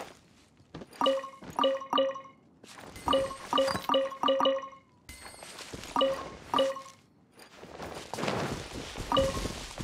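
Short bright chimes ring out quickly one after another.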